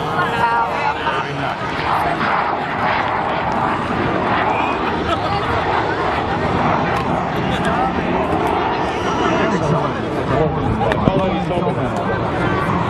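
A crowd of people chatters and murmurs nearby outdoors.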